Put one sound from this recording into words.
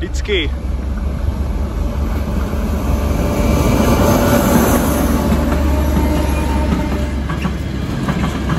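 A diesel locomotive engine rumbles loudly as it passes close by.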